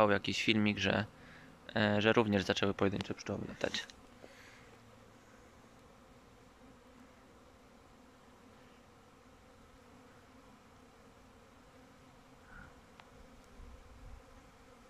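Bees buzz softly around hives outdoors.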